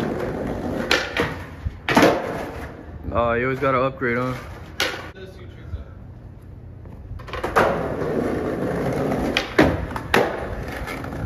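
A skateboard clacks sharply against the ground.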